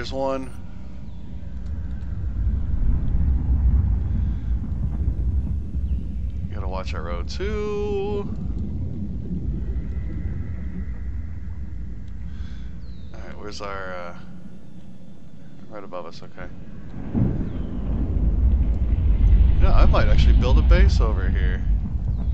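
A small submersible's engine hums with a deep, steady underwater rumble.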